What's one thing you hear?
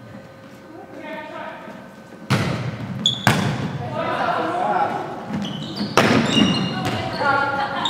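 Young women call out to each other during play.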